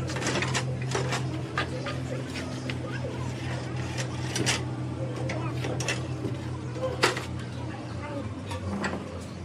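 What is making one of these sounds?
A heavy metal panel clanks and knocks as it is handled.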